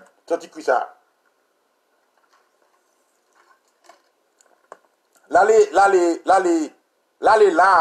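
A man sings loudly and close by in long, wavering notes.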